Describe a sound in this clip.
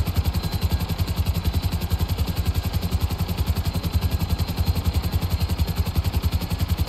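A helicopter's rotor thumps rapidly and steadily overhead.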